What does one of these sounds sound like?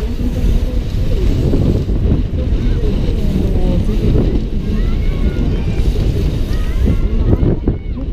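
Bicycle tyres roll and rumble on the asphalt track.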